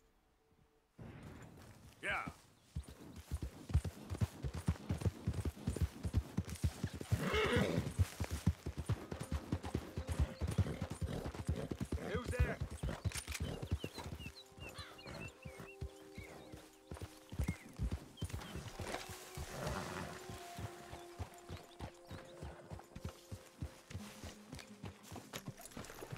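Horse hooves thud steadily on grass at a gallop.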